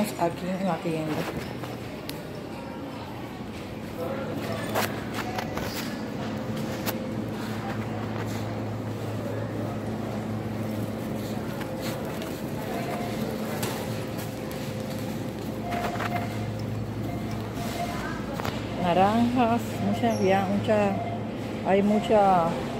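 A shopping cart rattles as it rolls across a hard floor.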